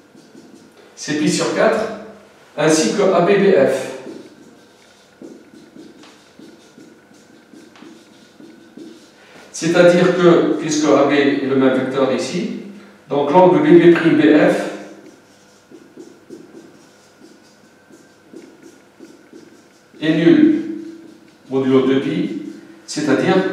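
An elderly man speaks calmly, explaining in bursts with pauses.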